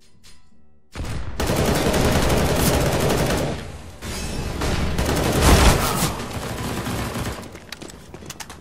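An assault rifle fires bursts in a video game.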